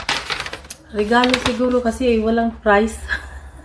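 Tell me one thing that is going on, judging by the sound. A woman speaks close by in a sing-song voice.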